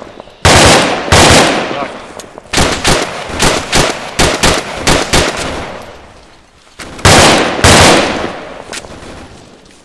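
Rifle shots crack loudly and echo across open ground.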